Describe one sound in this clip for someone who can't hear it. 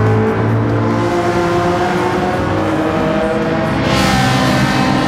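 Racing car engines roar loudly as they speed past.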